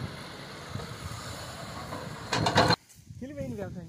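An excavator engine rumbles and whines nearby.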